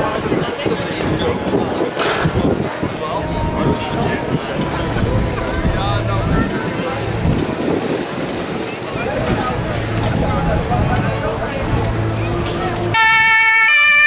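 A car engine hums as it rolls slowly past.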